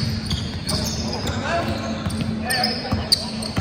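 A basketball bounces on a wooden gym floor.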